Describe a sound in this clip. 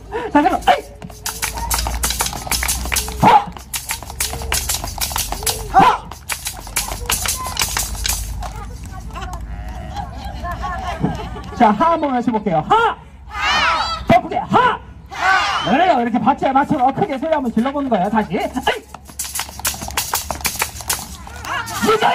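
A drum is beaten with sticks in a fast rhythm.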